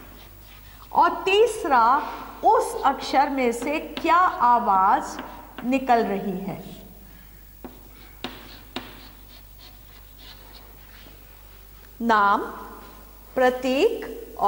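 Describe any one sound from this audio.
A woman speaks calmly through a small microphone.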